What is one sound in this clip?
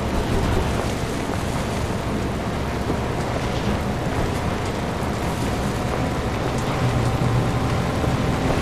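A vehicle engine rumbles steadily while driving.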